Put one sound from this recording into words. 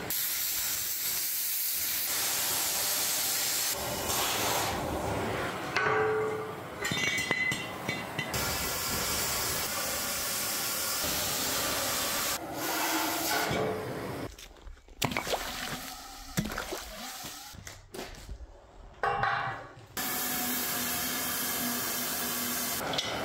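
A cutting torch hisses and roars steadily.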